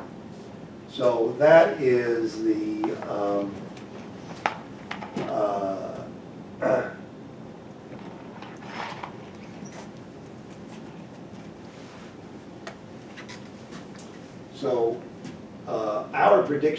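A middle-aged man lectures calmly, pausing between phrases.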